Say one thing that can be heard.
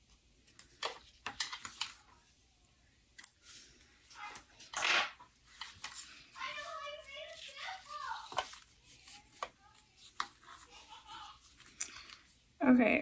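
Fabric and paper rustle and crinkle in hands.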